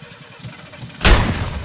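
A heavy weapon swings through the air with a loud whoosh.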